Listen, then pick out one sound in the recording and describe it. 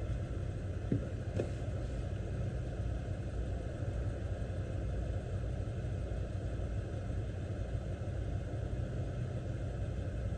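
A car's engine and road noise rumble low and steady inside the cabin.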